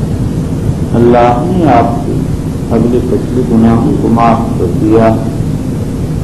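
An elderly man speaks slowly and deliberately through a microphone.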